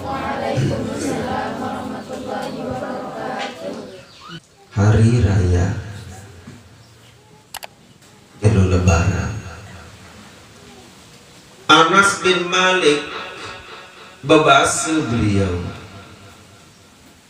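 A middle-aged man speaks through a microphone, chanting in drawn-out phrases.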